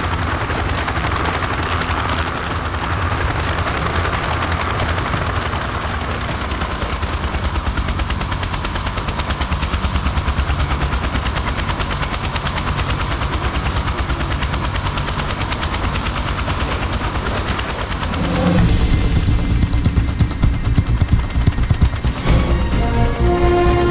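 A helicopter's rotor thumps steadily nearby.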